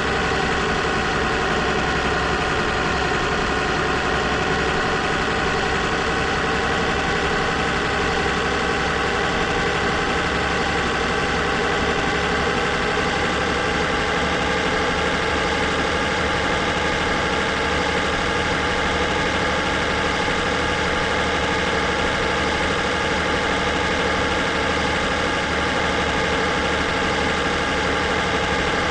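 A truck engine drones steadily at speed, rising slowly in pitch.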